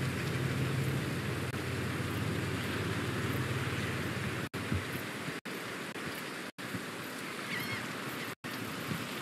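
Waves wash gently against a shore.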